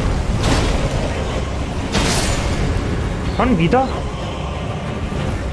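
A giant creature growls and roars.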